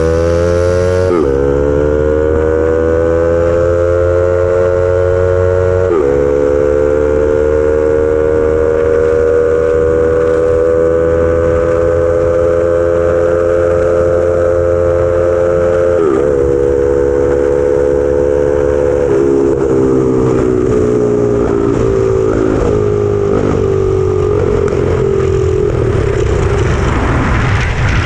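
Wind rushes past loudly at speed.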